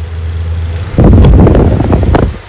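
A fan's push button clicks.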